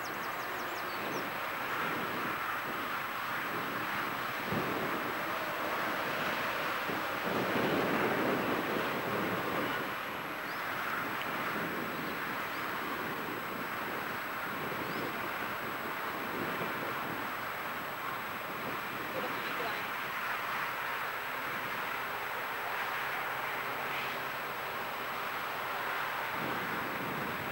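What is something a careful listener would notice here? An electric train rumbles past in the distance.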